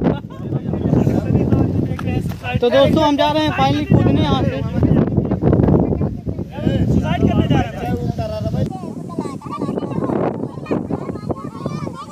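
Several young men talk loudly over one another close by, outdoors.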